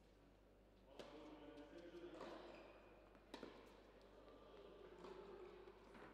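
A tennis racket strikes a ball with sharp pops, back and forth.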